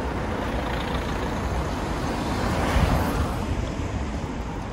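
A car passes close by with a rushing whoosh.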